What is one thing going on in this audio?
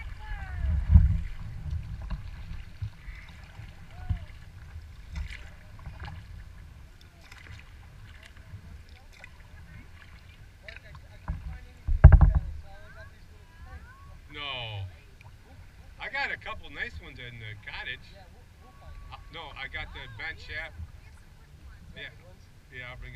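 Water laps softly against a kayak's hull.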